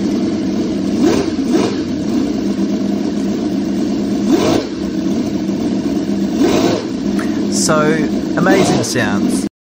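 A small engine revs up sharply in short bursts, again and again.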